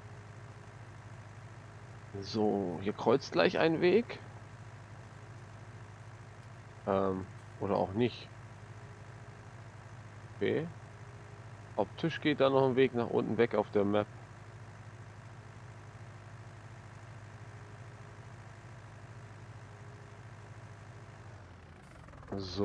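A tractor engine hums steadily as the tractor drives along.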